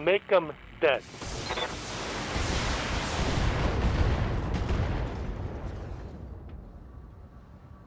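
A blast rumbles and roars, then slowly fades.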